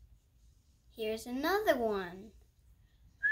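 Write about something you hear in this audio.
A young boy speaks briefly and calmly, close by.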